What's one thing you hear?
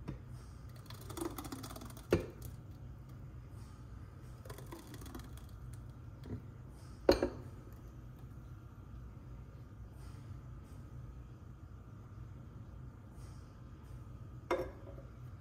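Thick liquid pours and plops softly into a bowl.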